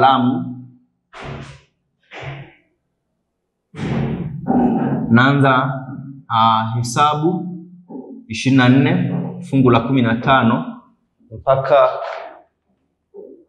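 A young man speaks calmly and clearly, as if explaining a lesson.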